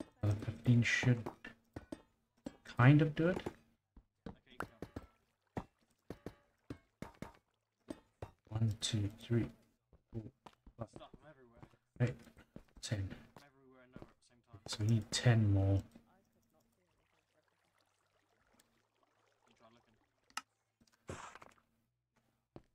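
Stone blocks are set down with short, dull knocks.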